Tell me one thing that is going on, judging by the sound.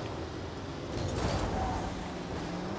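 A ball thuds against a wall.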